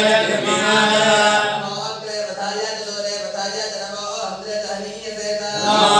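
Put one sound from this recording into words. A group of men chant prayers together in an echoing hall.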